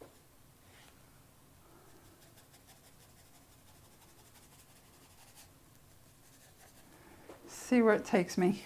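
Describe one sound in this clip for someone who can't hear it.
A paintbrush brushes softly across thick paper.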